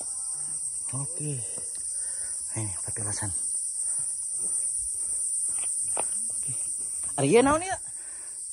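Young men talk at a distance outdoors.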